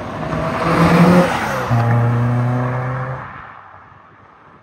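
A sports car engine roars loudly as the car accelerates past, then fades into the distance.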